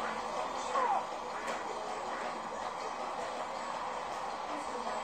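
Video game music and sound effects play through a television speaker.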